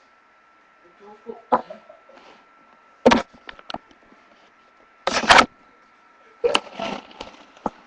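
A young girl speaks quietly, close to a microphone.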